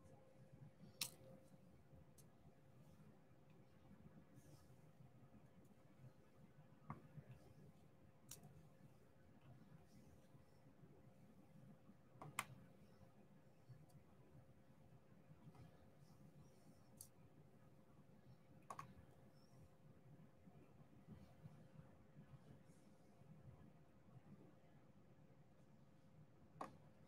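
Small plastic beads click softly as a pen tool taps them into place.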